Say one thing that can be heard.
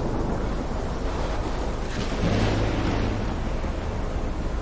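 Thunder rumbles loudly.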